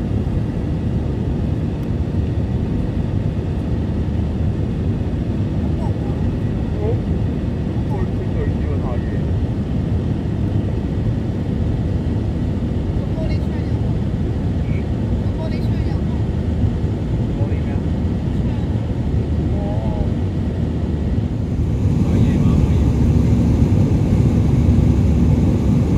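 A jet engine roars steadily from inside an airliner cabin, growing louder near the end.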